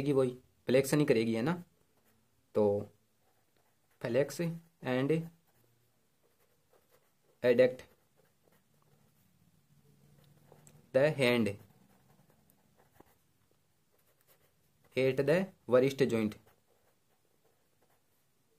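A felt-tip marker scratches across paper as words are written.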